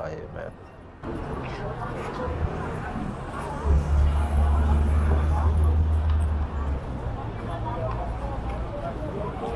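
A crowd of people murmurs in the background outdoors.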